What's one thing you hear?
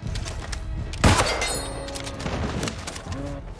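A sword strikes an animal with a sharp, heavy hit.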